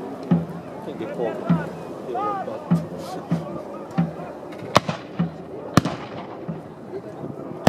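A drum beats in a steady rhythm.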